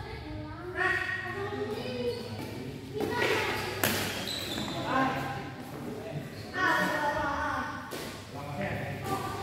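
Men talk and call out in the echoing hall.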